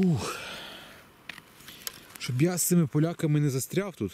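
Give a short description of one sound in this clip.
A mushroom is pulled out of soft moss with a faint snap.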